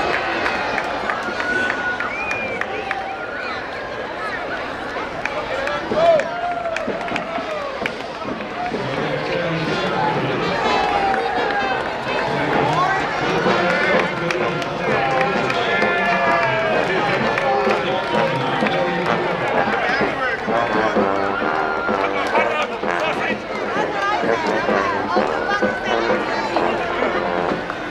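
A crowd of spectators chatters and cheers outdoors along a street.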